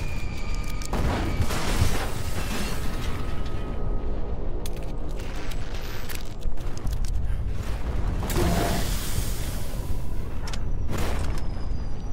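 A pistol fires several loud shots.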